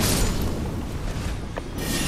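A sword whooshes through the air.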